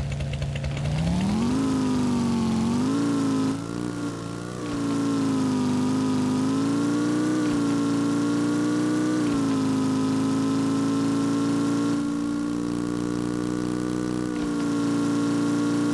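A motorcycle engine revs up and drones steadily at speed.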